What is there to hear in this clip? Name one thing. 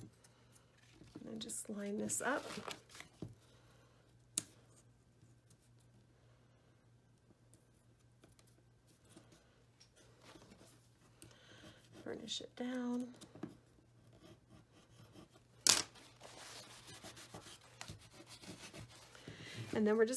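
Paper rustles and crinkles as it is handled and folded.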